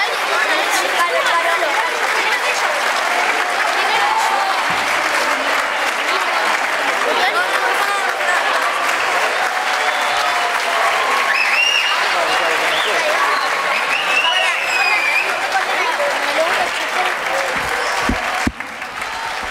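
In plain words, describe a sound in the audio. A choir of young girls sings together in a large echoing hall.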